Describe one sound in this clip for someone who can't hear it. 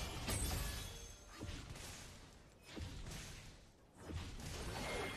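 Video game combat sound effects clash and burst.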